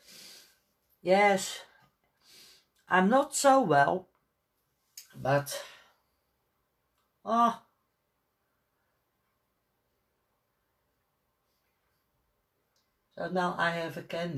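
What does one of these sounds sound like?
A woman speaks calmly close by, with pauses.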